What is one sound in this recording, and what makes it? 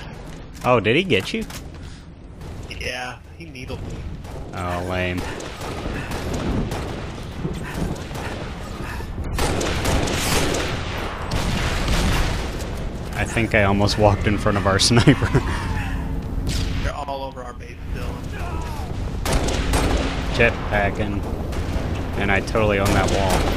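Rifle shots crack now and then.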